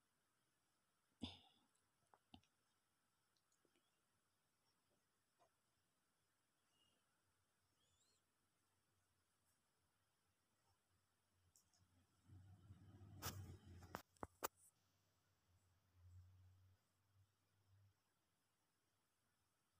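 Yarn rustles softly as a crochet hook works through it.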